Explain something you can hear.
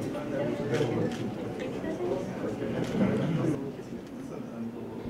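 A man talks calmly with a small group close by.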